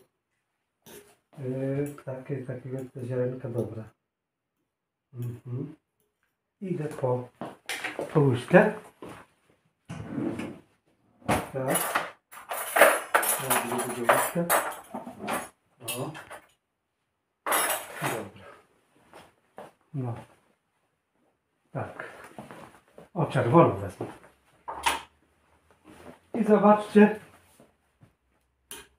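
A middle-aged man talks calmly close by, in bursts with pauses.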